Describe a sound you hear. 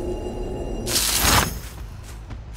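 A machine is struck with a loud bang.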